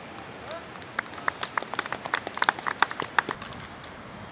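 Metal chains jingle and rattle as a flying disc strikes a basket.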